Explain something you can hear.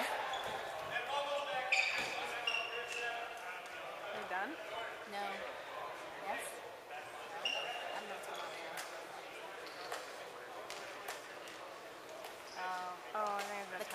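Several boys and men shout and call out across a large echoing hall.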